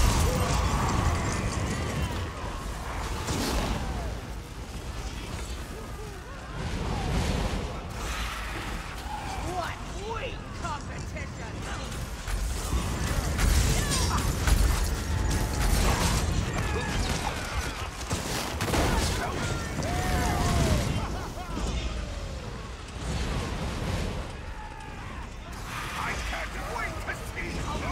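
Magic spells crackle and burst in quick bursts.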